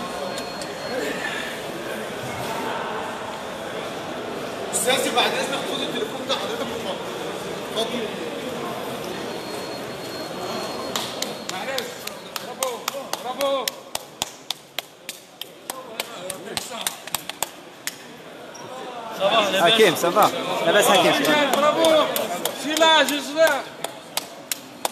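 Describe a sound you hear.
A crowd of men talk and murmur close by, indoors.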